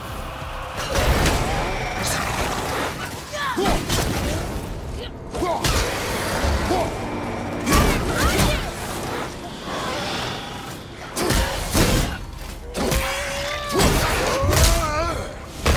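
Heavy blows and impacts thud and crash during a fight.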